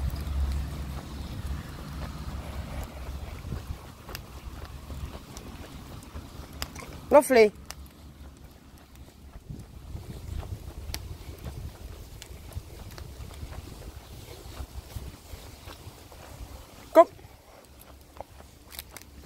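Footsteps and dog paws patter on a paved path outdoors.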